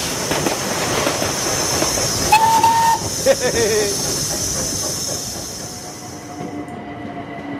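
A steam train's wheels rumble and clatter along the rails.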